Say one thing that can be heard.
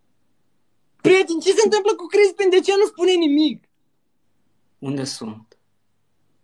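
Another young man talks with animation over an online call.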